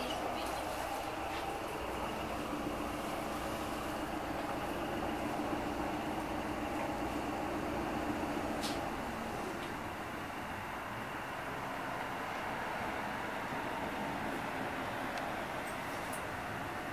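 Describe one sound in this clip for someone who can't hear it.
A tram rumbles and rattles along its rails.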